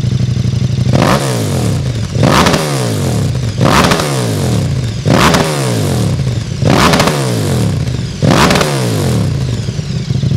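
A motorcycle engine revs up sharply several times and drops back to idle.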